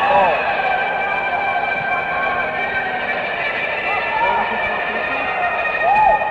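An electric guitar plays wailing, bending notes over sustained chords, recorded live.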